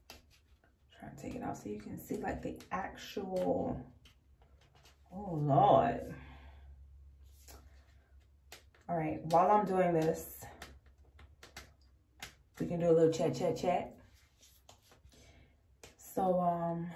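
A woman talks calmly and close by, in short bursts with pauses.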